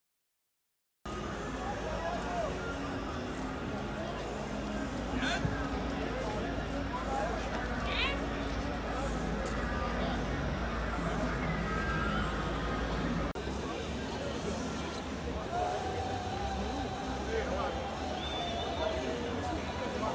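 A stadium crowd murmurs and chatters in a large open space.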